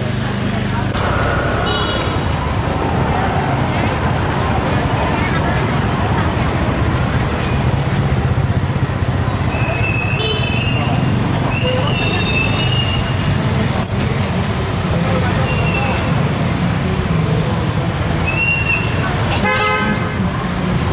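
Motorbike engines hum and pass close by.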